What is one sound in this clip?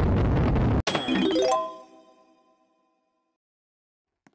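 A bright chime rings out once.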